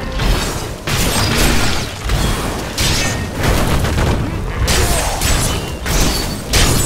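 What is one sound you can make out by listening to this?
Magic spells burst and crackle with loud blasts.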